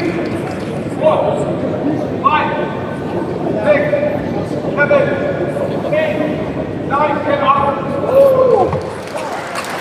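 A man calls out a count loudly, one number at a time, in a large echoing hall.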